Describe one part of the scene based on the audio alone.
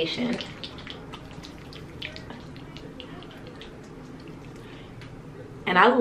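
Hands rub foamy cleanser over a face with soft squelching swishes.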